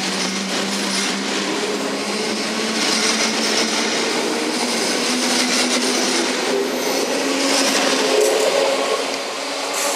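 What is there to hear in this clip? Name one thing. A train's motors whine as it passes.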